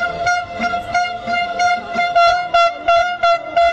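A large crowd chants loudly outdoors.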